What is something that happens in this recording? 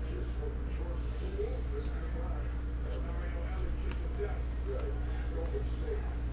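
Trading cards rustle and slide against each other in a man's hands.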